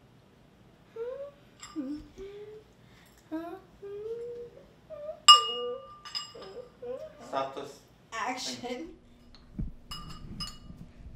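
A girl talks playfully close by.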